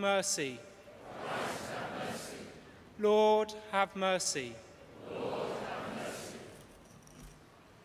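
A large congregation sings a response in unison.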